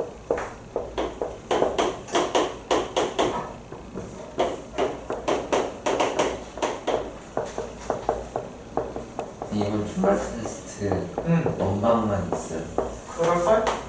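Chalk taps and scrapes quickly on a board.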